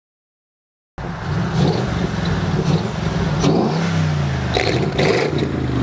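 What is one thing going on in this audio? A car engine idles with a deep rumble and revs up and down.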